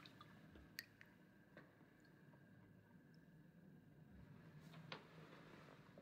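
Water sloshes softly in a basin as feet move in it.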